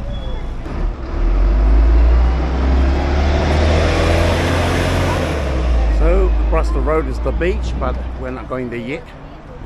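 A bus engine rumbles deeply and pulls away.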